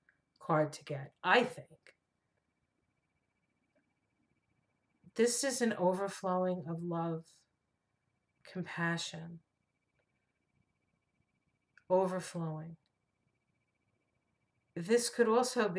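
A middle-aged woman speaks calmly and slowly close to a microphone, with long pauses.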